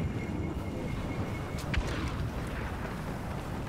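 Footsteps run quickly on snowy ground.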